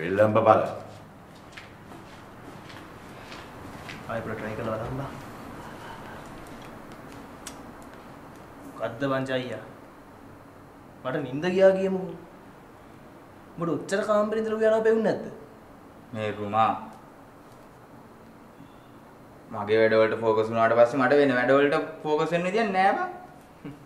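Two young men talk with each other, close by, in short exchanges.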